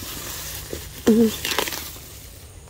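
A hand pulls weeds from soil with a tearing rustle.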